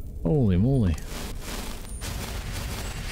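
A magic spell crackles and whooshes.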